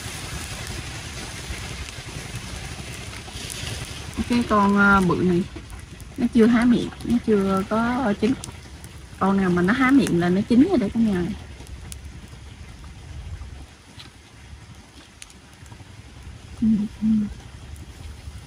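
Clams sizzle softly on a hot grill.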